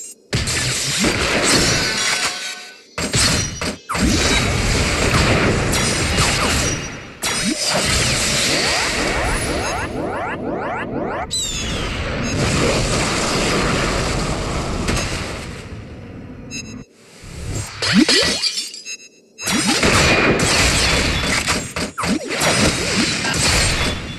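Magic effects whoosh.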